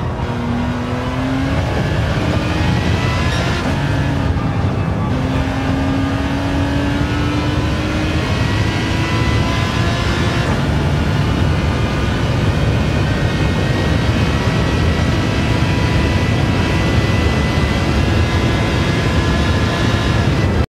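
A racing car engine roars and climbs in pitch as the car speeds up through the gears.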